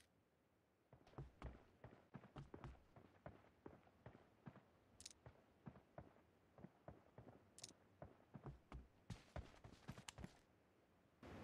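Footsteps patter quickly over ground.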